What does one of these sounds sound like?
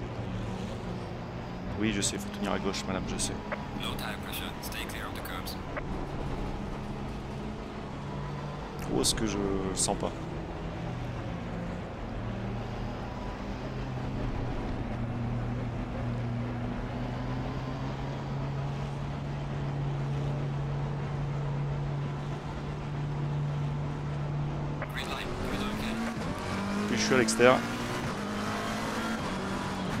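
A racing car engine drones steadily, shifting pitch with the gears.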